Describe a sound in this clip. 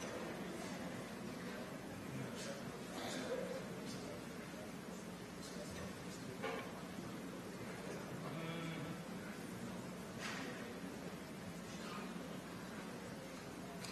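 An audience of men and women chatters and murmurs softly in a large echoing hall.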